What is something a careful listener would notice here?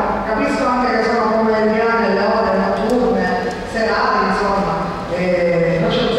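A woman speaks steadily into a microphone, heard through loudspeakers in an echoing hall.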